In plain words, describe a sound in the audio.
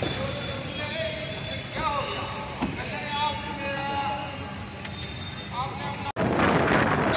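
Car engines rumble as vehicles roll slowly past.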